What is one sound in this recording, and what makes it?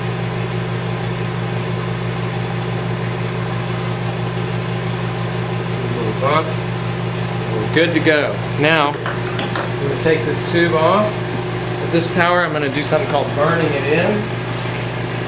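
An electrical device hums steadily.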